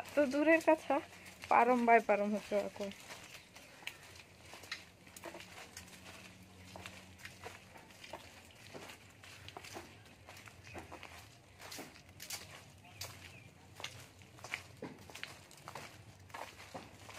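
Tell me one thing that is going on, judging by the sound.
Footsteps scuff on a concrete path.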